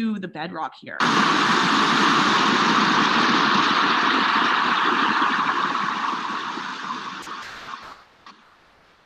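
Water rushes and splashes loudly over rocks and plants.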